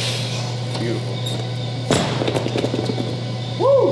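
Heavy dumbbells thud onto the floor.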